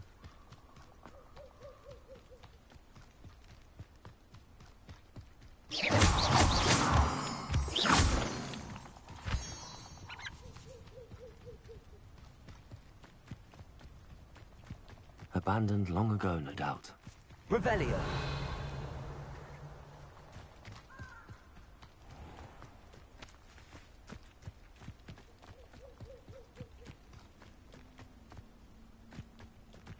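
Footsteps crunch steadily over soft forest ground.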